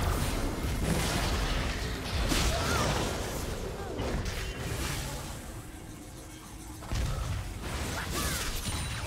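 Video game spell and attack effects crackle, whoosh and thud.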